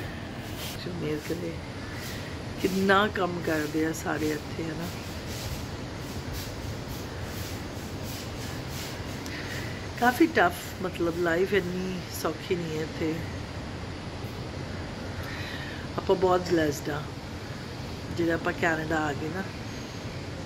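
A middle-aged woman speaks calmly and close by, in short bursts with pauses.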